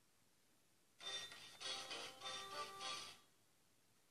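A short, bright game jingle plays as a match begins.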